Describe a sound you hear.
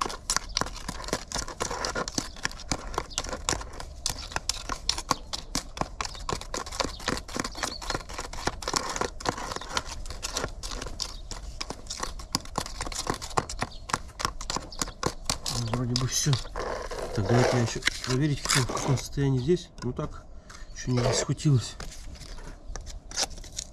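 A trowel scrapes and taps against the inside of a plastic bucket.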